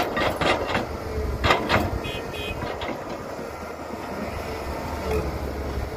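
Dirt and rocks clatter into a truck bed.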